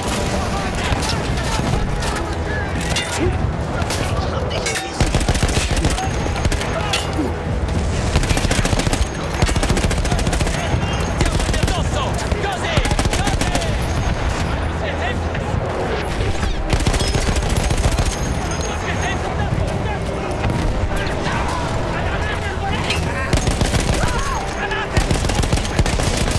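A heavy machine gun fires in rapid bursts close by.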